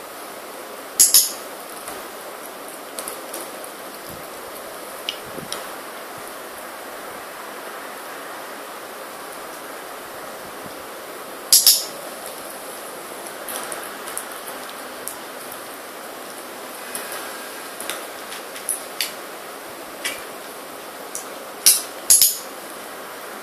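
Plastic harness buckles click and snap sharply close by.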